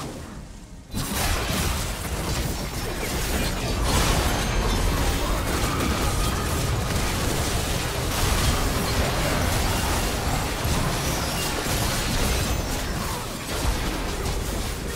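Magic spells crackle and burst in a fast, noisy fight.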